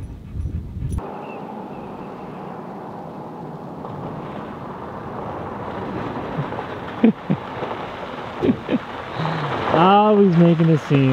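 A pickup truck drives closer over gravel, its tyres crunching.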